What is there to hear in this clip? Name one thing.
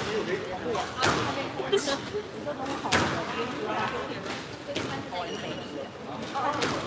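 A squash ball smacks hard against the walls in an echoing court.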